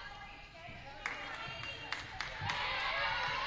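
A volleyball is struck with sharp slaps in an echoing gym.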